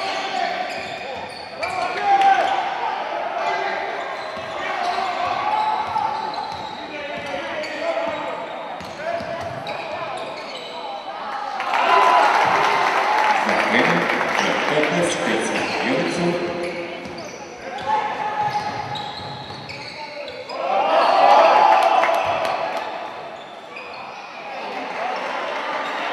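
A crowd of spectators murmurs and cheers loudly in an echoing hall.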